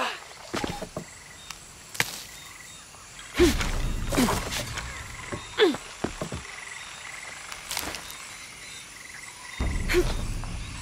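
Footsteps rustle through dense jungle undergrowth.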